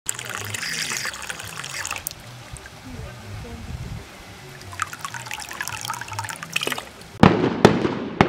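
Water splashes and gurgles into a metal cup.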